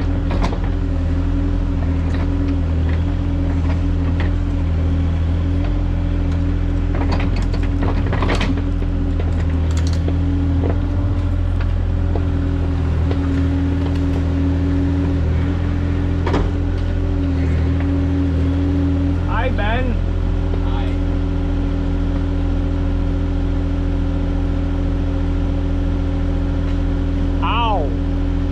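A diesel engine hums steadily up close.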